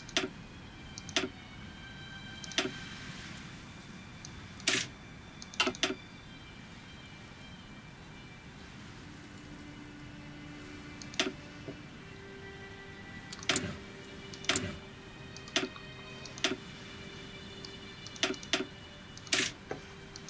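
Short game menu clicks sound again and again as menus open and close.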